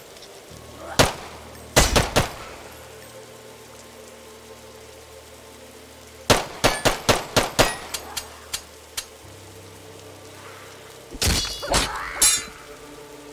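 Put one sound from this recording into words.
Gunshots crack in short, quick bursts.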